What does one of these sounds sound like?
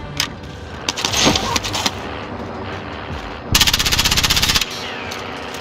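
A rifle fires a burst of loud shots.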